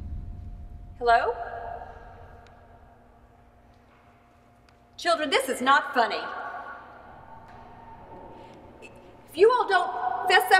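A young woman sings in long high notes, echoing in a large hall.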